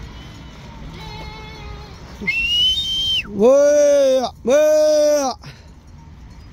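Sheep bleat loudly close by.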